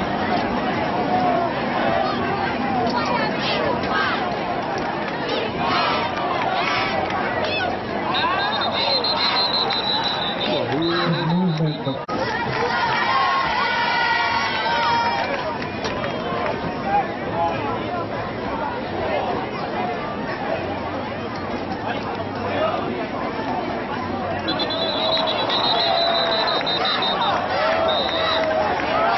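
A crowd of spectators chatters and cheers nearby outdoors.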